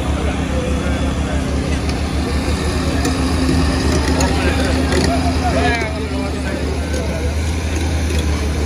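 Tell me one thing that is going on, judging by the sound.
A diesel hydraulic excavator engine rumbles.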